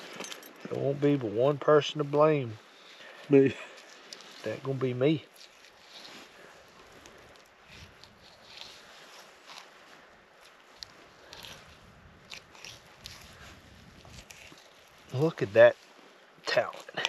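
A knife scrapes and cuts through a fish.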